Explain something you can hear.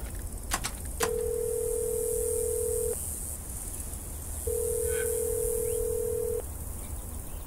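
A phone line rings twice through a handset.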